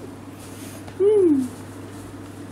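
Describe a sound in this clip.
A kitten meows once, loud and close.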